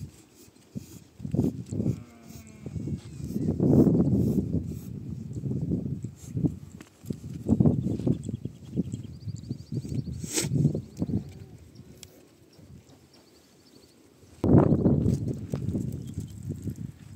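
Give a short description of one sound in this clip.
Hooves shuffle on dry dirt.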